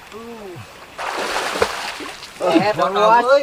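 Water splashes loudly as a man swims.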